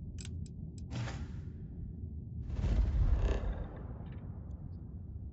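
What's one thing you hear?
A deep whoosh swells and fades.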